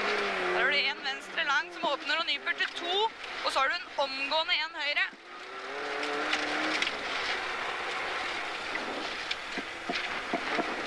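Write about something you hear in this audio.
A rally car engine revs hard and changes pitch rapidly.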